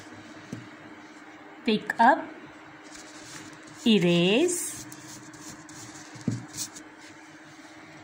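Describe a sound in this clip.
An eraser rubs against paper.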